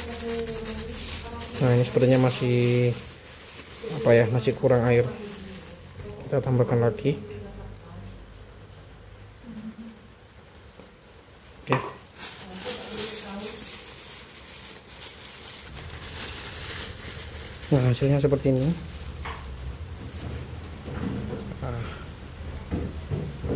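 A plastic bag crinkles as hands squeeze and fold it.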